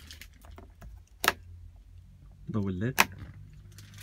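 A small plastic switch clicks.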